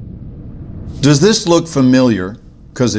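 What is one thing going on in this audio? A man speaks with a tense voice.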